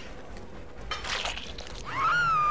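A blade slashes into a person.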